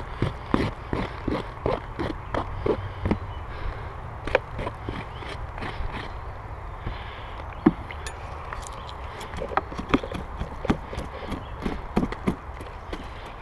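A hive tool knocks and scrapes against wooden beehive boxes.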